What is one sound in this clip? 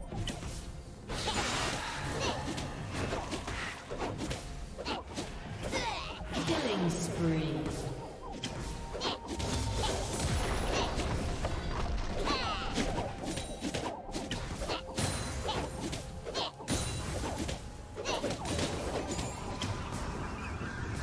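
Game attack impacts thud and clang repeatedly.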